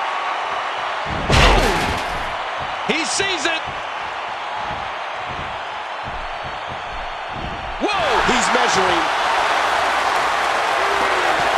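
A large crowd cheers and roars steadily in a big echoing arena, swelling louder near the end.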